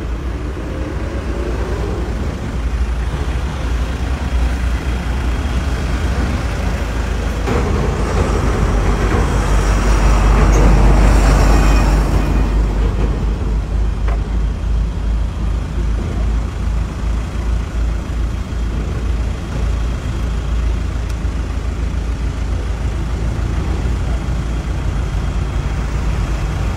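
Wind buffets the microphone outdoors with a steady low rumble.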